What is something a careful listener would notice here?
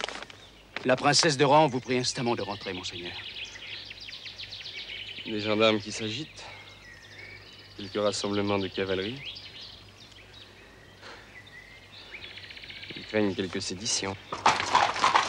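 Men talk calmly with one another close by.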